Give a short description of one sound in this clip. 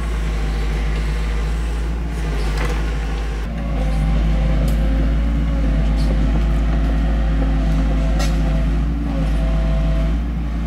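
A small excavator's diesel engine rumbles steadily.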